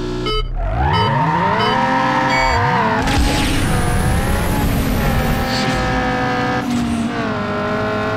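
A car engine revs up hard and climbs through the gears.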